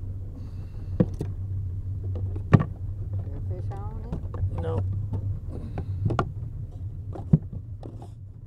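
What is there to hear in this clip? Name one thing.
Plastic tubes knock and clatter against a wooden crate.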